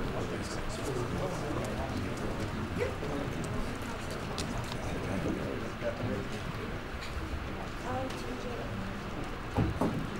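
A crowd of people chatters and murmurs nearby in a large room.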